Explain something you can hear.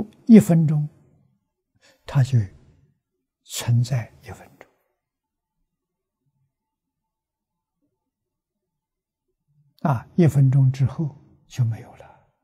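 An elderly man speaks calmly and slowly into a microphone, with long pauses.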